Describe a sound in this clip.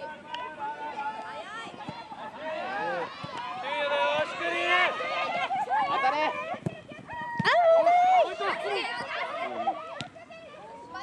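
Young boys shout and call out excitedly nearby outdoors.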